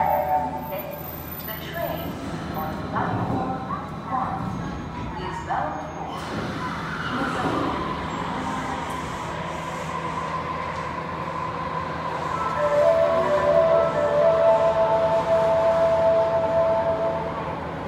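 A train rolls slowly into an underground station with a low rumble.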